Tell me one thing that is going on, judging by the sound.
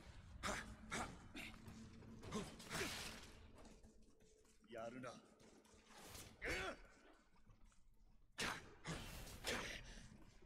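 A sword swishes through the air in quick strokes.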